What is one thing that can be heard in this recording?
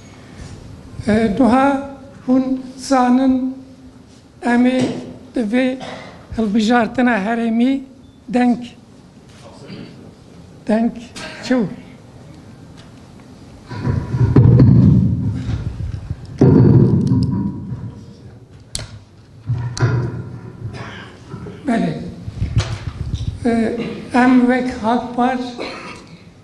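An elderly man speaks steadily into microphones, close up.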